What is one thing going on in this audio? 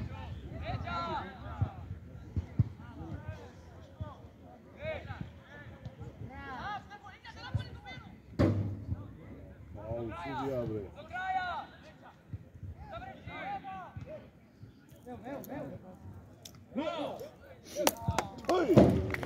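Young men shout to one another at a distance, outdoors in the open.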